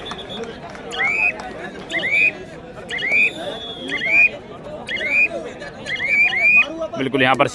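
A young man chants a rapid, repeated call loudly, close by.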